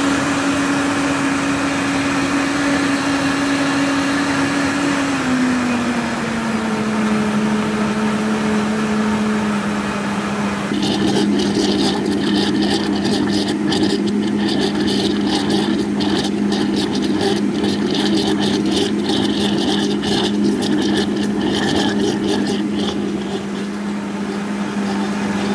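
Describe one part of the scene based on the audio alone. A blender motor whirs at high speed, blending a milkshake.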